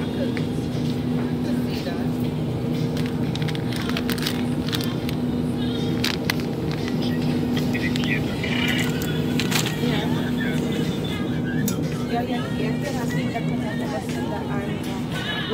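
Refrigerated display cases hum steadily.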